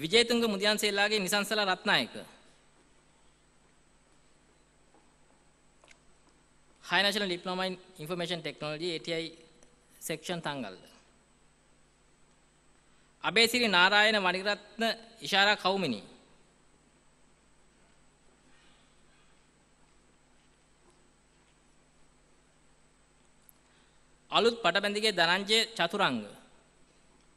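A man reads out in short bursts over a loudspeaker in a large echoing hall.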